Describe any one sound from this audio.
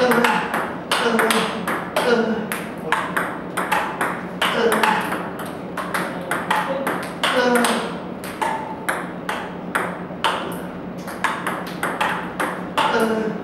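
A table tennis ball bounces on a table with quick clicks.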